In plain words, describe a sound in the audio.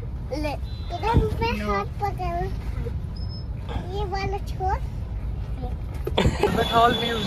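A young boy laughs close by.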